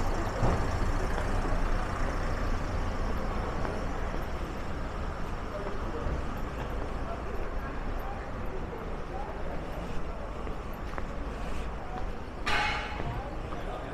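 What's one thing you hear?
Footsteps walk on cobblestones.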